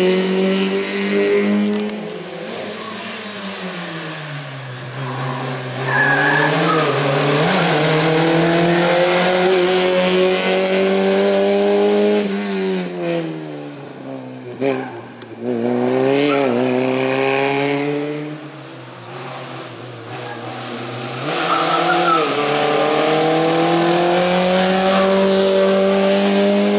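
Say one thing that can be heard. A race car engine roars and revs hard, rising and dropping with each gear change.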